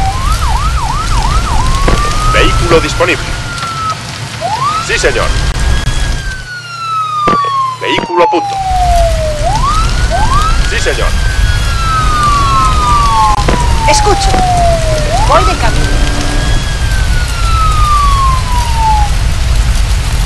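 Emergency sirens wail, rising and falling again and again.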